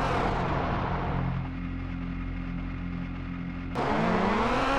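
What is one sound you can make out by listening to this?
A car engine hums at idle.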